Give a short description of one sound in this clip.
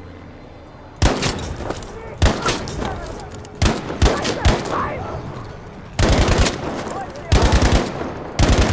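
A rifle fires single shots and rapid bursts, loud and close, echoing outdoors.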